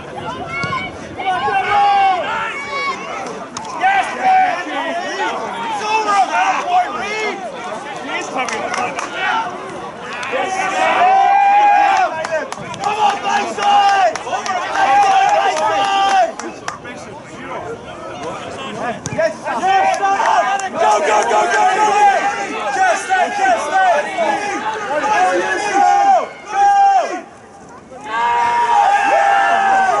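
Spectators and players shout and cheer excitedly outdoors.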